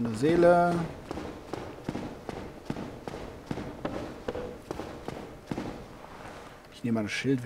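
Heavy armoured footsteps clank on stone at a steady pace.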